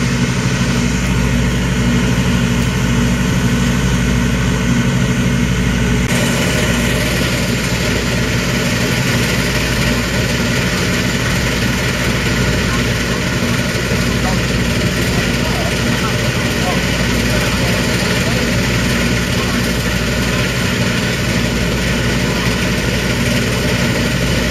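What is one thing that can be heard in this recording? A combine harvester's diesel engine runs with a steady drone.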